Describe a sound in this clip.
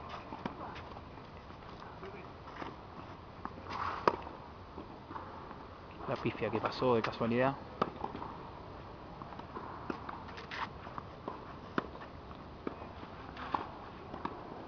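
Tennis balls are struck with sharp pops of a racket, back and forth.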